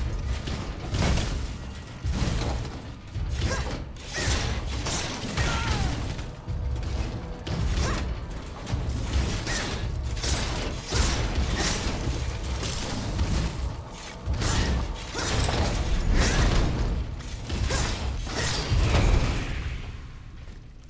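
Heavy blows land with deep booming thuds.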